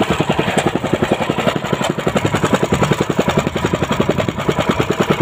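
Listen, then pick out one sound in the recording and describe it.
A small boat engine chugs rapidly and steadily.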